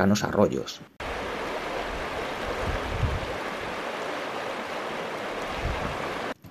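A river rushes and splashes over stones.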